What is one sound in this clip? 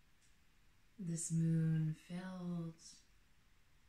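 A woman speaks slowly and calmly, close by.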